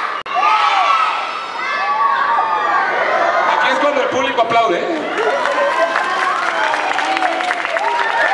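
A crowd of onlookers chatters and calls out in a large echoing hall.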